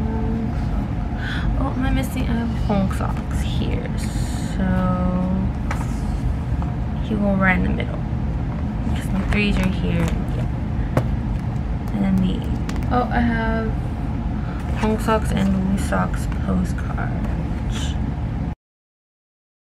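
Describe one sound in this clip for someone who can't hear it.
Plastic sleeves and cards rustle and crinkle as they are handled.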